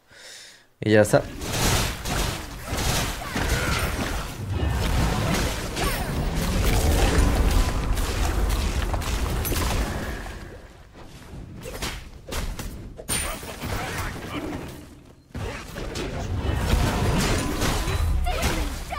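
Game combat effects whoosh, clang and burst.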